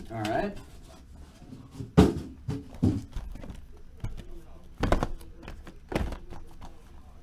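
Boxes knock as they are moved and set down.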